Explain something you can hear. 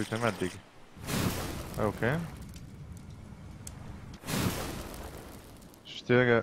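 A campfire bursts alight and crackles.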